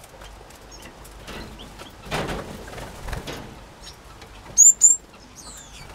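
Bird wings flutter as a finch flies past.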